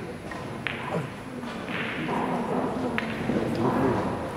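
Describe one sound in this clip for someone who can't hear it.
Billiard balls click against each other.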